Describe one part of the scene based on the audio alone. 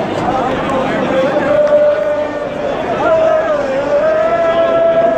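A large crowd of football fans sings a chant in unison outdoors.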